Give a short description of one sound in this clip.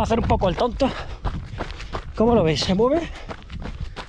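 A man talks with animation close to the microphone.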